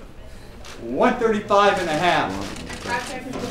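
A man calls out loudly over a microphone.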